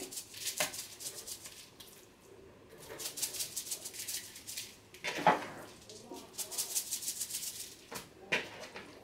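Seasoning rattles and sprinkles from a shaker in quick bursts.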